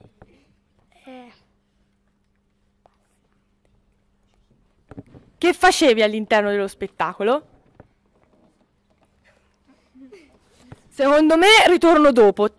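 A young boy answers into a microphone.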